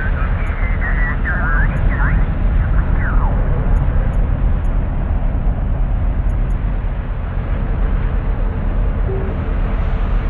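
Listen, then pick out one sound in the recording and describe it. A heavy vehicle's engine rumbles low and steadily.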